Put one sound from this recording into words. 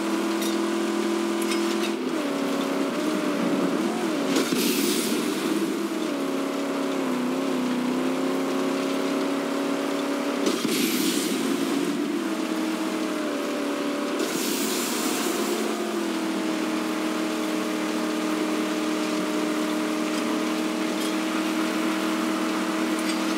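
A car engine roars steadily, its pitch rising and falling as it speeds up and shifts.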